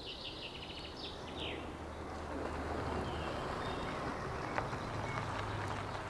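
A car engine hums as a car drives slowly along.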